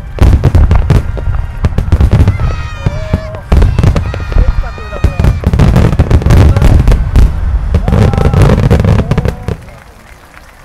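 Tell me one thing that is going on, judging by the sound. Fireworks boom and crackle in a rapid, thunderous barrage.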